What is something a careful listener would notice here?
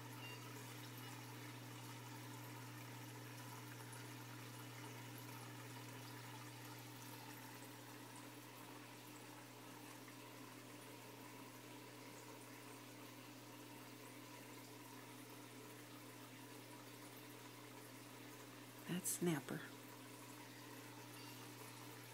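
Water trickles steadily from an aquarium filter.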